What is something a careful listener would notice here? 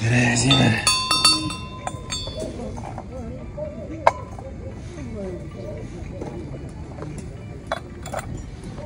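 Metal objects clink as a hand picks them up.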